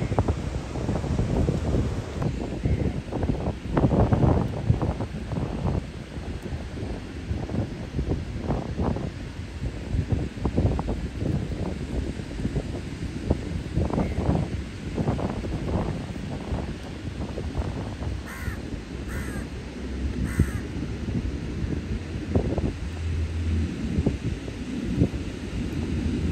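Wind blows gustily outdoors.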